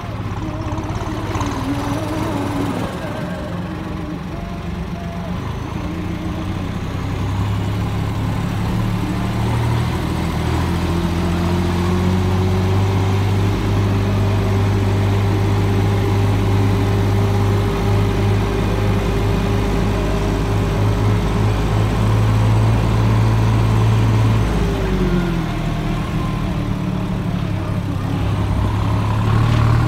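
An engine hums steadily as a vehicle climbs, its pitch shifting now and then.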